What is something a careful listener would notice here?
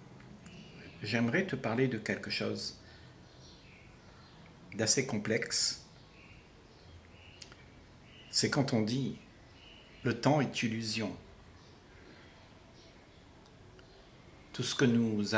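An elderly man speaks calmly and slowly, close by, with pauses between phrases.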